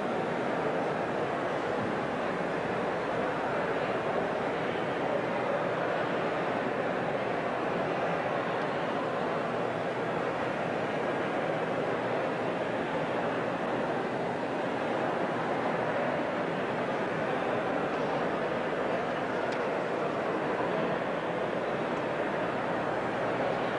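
A crowd of men and women chatter and murmur close by throughout.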